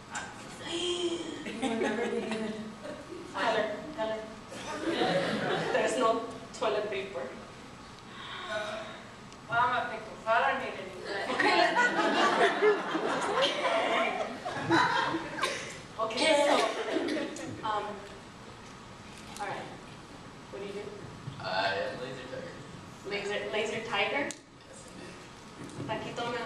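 Young performers speak with animation in a large echoing hall.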